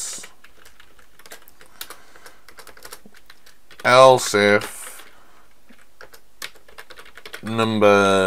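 Keys click quickly on a keyboard.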